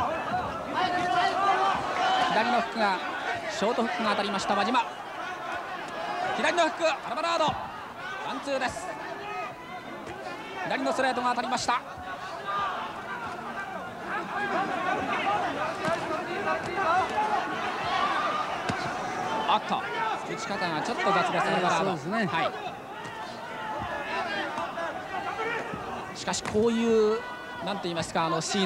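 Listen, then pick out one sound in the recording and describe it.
A large crowd cheers and roars in a big hall.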